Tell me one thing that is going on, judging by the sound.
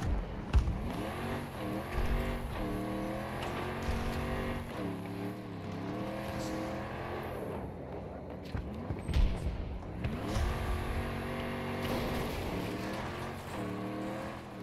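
An armoured vehicle's engine revs up and down through the gears as it drives.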